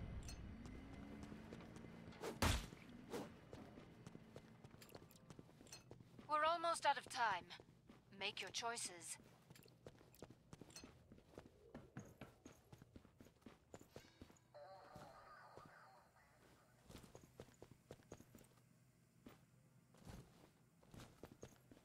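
Footsteps thud quickly across a hard floor.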